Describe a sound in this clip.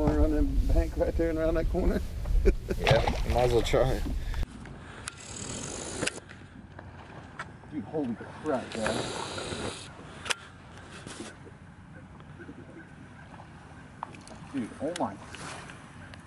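A man talks with animation close by, outdoors in wind.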